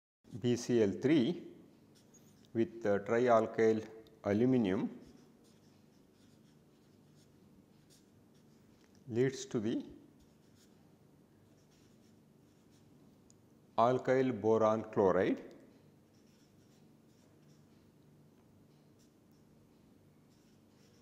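A felt-tip marker squeaks and scratches softly on paper.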